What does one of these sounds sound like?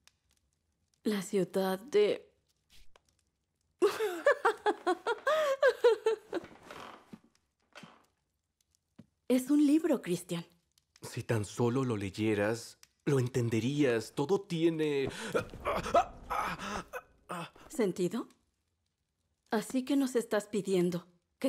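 A young woman speaks softly and tearfully, close by.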